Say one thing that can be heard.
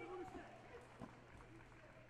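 A kick lands on a body protector with a dull thud.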